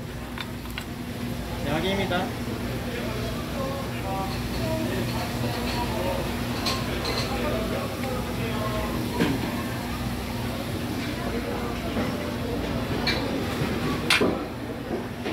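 Metal tongs clink against a tray and a plate.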